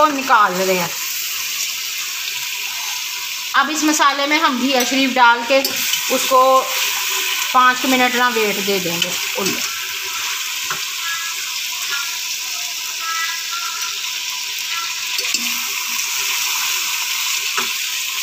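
A metal strainer scrapes and clinks against a metal pot.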